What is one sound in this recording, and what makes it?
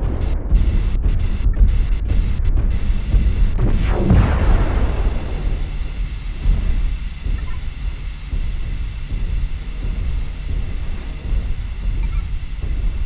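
A heavy machine rumbles low and steadily.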